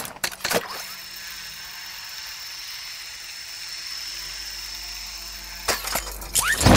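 A zipline whirs steadily as it pulls upward.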